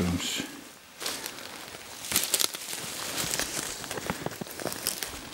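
Footsteps crunch and rustle through dry leaves on the forest floor.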